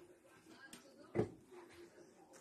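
A plastic bottle is set down on a hard counter with a thud.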